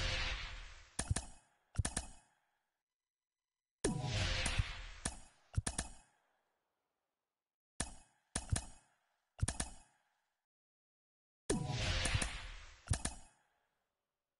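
Sharp menu clicks sound between the swooshes.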